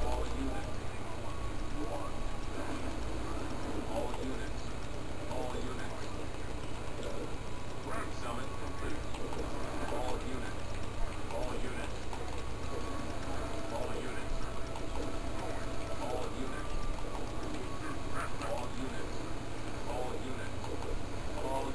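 Video game gunfire and blasts crackle through a small television speaker.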